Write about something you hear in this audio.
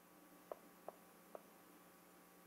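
Chalk taps and clicks against a board.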